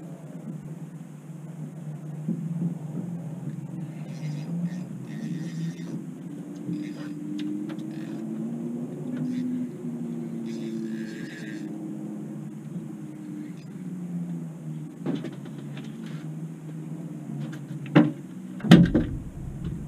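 A boat's outboard motor idles steadily.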